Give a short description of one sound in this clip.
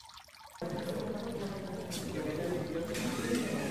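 Water splashes and bubbles steadily from a small fountain.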